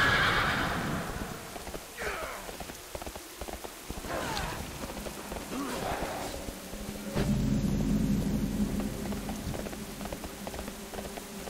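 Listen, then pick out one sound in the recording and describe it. Light footsteps patter quickly on grass.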